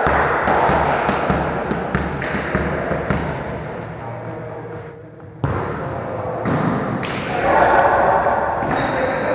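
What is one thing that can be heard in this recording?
Several men call out to one another across an echoing hall.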